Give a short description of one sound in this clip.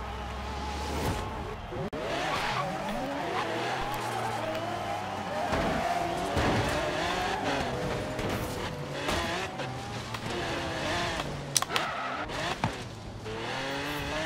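A car engine roars and revs up and down.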